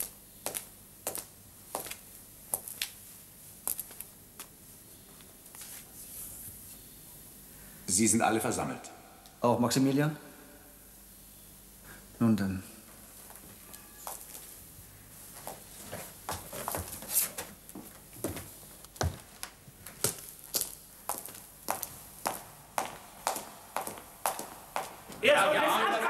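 Footsteps echo on a stone floor in a large hall.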